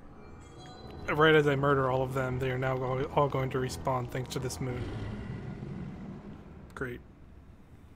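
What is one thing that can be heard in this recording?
A deep, eerie swelling chord rises loudly and slowly fades away.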